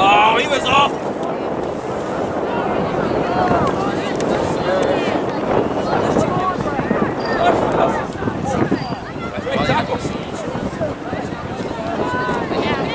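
A crowd of spectators chatters and calls out across an open field.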